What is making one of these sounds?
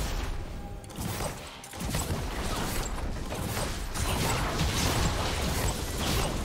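Spell effects crackle and burst in a fast video game battle.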